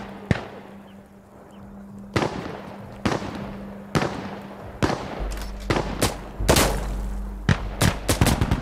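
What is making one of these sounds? Single gunshots crack at intervals.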